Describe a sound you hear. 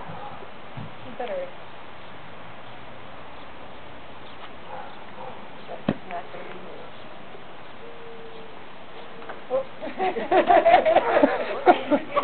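Women talk and laugh nearby outdoors.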